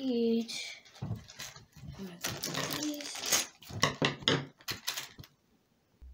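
Small plastic toy pieces click and rattle as they are handled.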